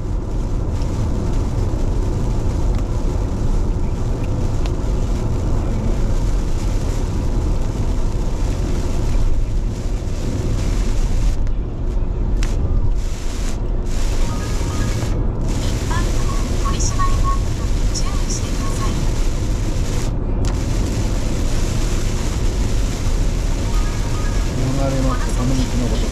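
Rain patters on a car's windscreen.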